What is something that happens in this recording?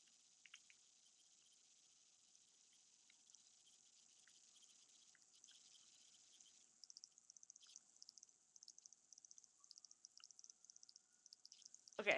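A toothbrush scrubs softly against teeth.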